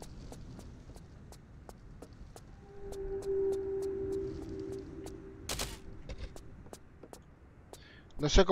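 Footsteps patter quickly on a wooden floor.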